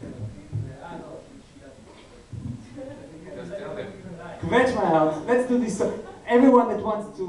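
A small band plays lively folk music.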